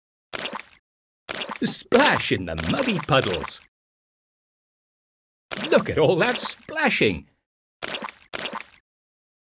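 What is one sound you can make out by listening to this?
Mud splashes with a wet slap, again and again.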